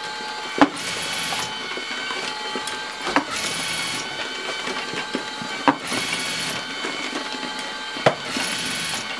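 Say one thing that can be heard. Sharp mechanical clacks sound at intervals.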